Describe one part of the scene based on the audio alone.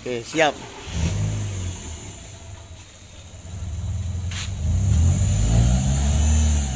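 A car engine rumbles nearby.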